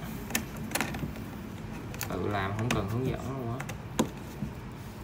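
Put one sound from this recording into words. A plastic cap clicks onto a plastic post.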